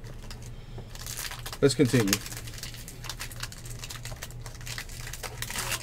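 A foil wrapper crinkles and tears as hands open it.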